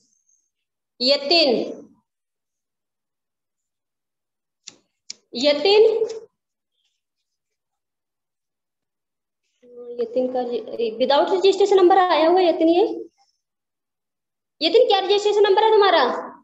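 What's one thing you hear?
A woman speaks calmly in short phrases, heard close through a microphone.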